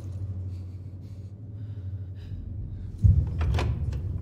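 A heavy metal door lock clanks and thuds.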